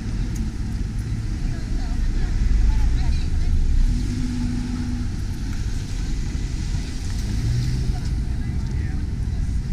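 Cars drive past on a street nearby.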